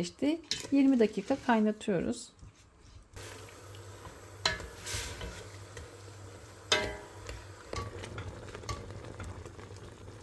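A wooden spoon stirs and scrapes against a metal pot.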